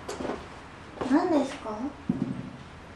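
A young woman speaks briefly and softly nearby.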